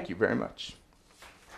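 A man speaks briefly over a microphone.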